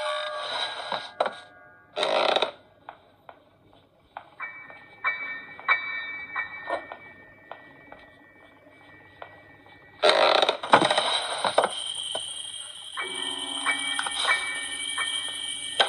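Video game sound effects play from a small tablet speaker.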